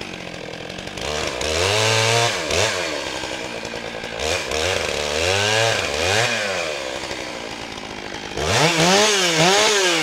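A chainsaw revs up and down loudly, again and again.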